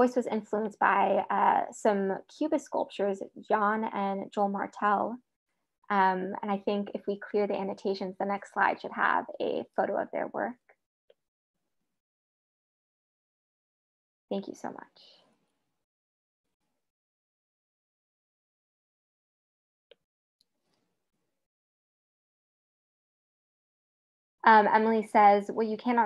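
A young woman speaks calmly through a microphone in an online call.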